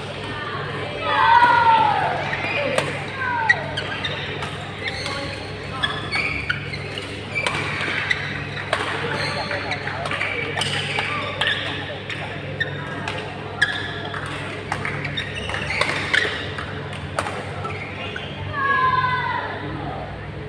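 Sports shoes squeak sharply on the court floor.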